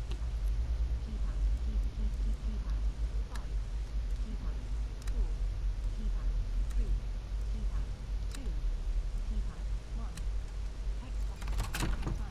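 Buttons on a keypad click as they are pressed one by one.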